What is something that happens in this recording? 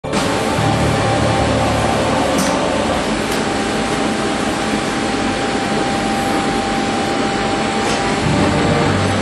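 A conveyor belt runs with a steady mechanical rattle and hum.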